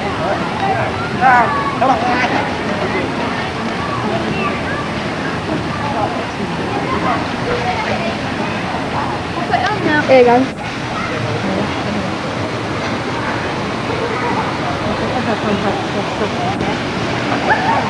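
Young men shout and call out to each other with excitement.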